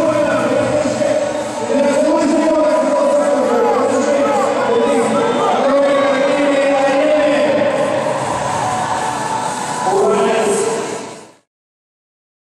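A crowd chants and cheers loudly in a large echoing arena.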